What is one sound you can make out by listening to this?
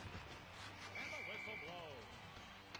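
A referee's whistle blows a short steady note.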